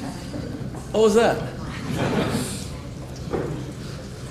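A younger man speaks briefly nearby.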